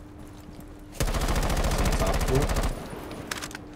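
Rapid gunfire rattles in a burst.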